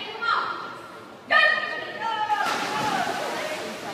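Swimmers dive into an indoor pool.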